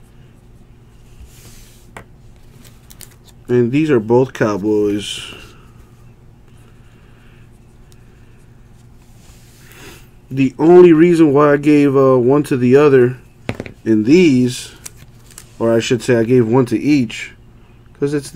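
Trading cards rustle and slide as hands handle them.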